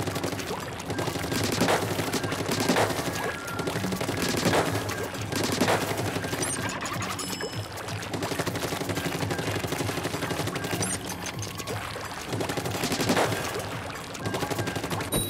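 A game's ink gun fires in wet, splattering bursts.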